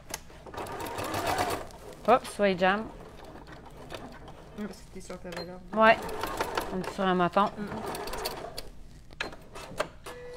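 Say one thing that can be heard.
Buttons on a sewing machine click when pressed.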